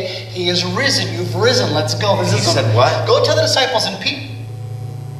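A man speaks with animation through a loudspeaker in an echoing hall.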